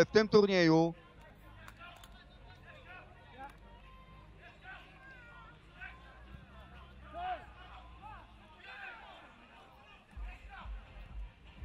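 Men shout to each other faintly across an open pitch.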